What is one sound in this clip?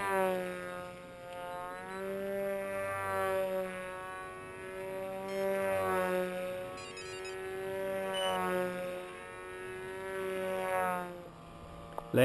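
A model plane's electric motor whines overhead, rising and falling in pitch as it passes.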